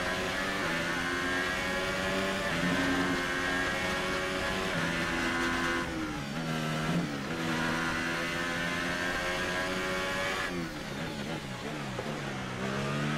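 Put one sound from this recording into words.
A racing car engine screams at high revs, rising through the gears and dropping as it slows for corners.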